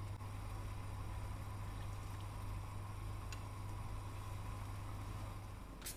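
A sauce simmers and bubbles in a pan.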